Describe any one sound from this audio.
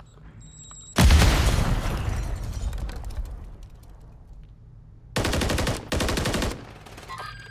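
A rifle fires loud bursts of rapid shots.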